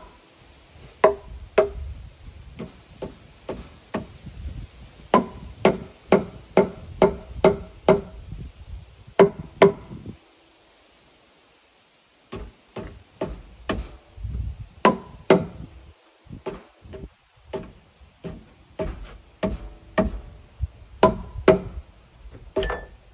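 A hammer strikes wood overhead in sharp, repeated knocks.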